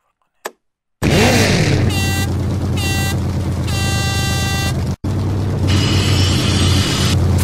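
A truck engine roars and revs.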